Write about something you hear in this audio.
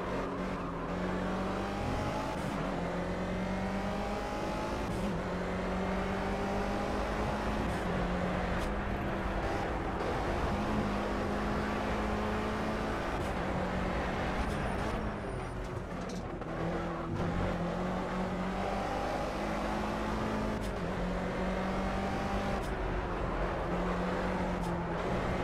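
A race car engine roars and revs up and down through the gears.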